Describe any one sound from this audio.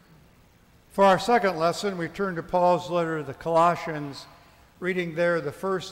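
An elderly man speaks calmly and clearly through a microphone in an echoing hall.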